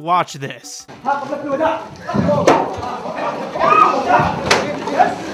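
Several men shout excitedly nearby in an echoing room.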